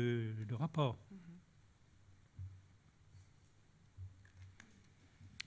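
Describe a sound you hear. An elderly man speaks slowly and quietly into a microphone.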